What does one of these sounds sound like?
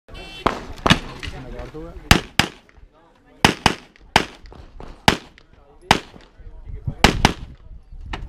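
Pistol shots crack sharply outdoors, fired in quick bursts with short echoes.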